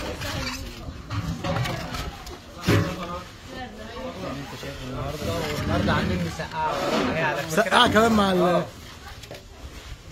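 Foam food boxes creak and tap as they are handled.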